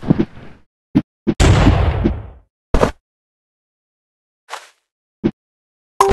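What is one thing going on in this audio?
A game character swings a sword with short, sharp whooshes.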